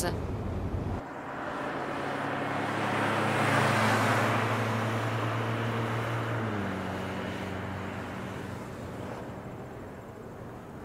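A car engine hums as the car drives past on a road and fades away.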